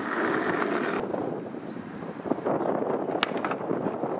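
A skateboard clatters and knocks onto asphalt.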